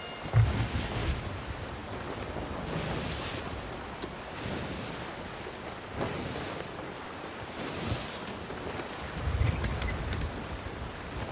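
Waves surge and crash against a wooden ship's hull.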